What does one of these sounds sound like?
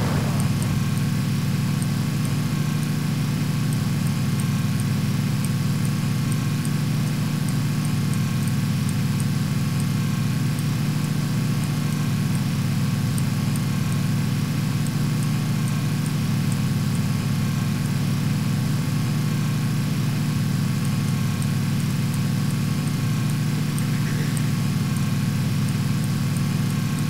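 Tyres rumble over a dirt road.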